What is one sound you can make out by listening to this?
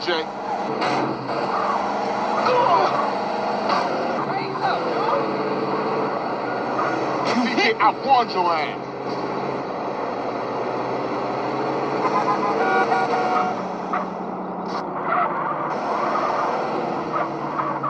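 A game car's engine hums steadily through a small tablet speaker.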